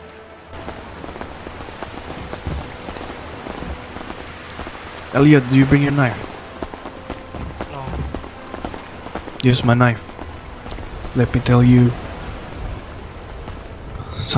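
Sea waves wash in the distance.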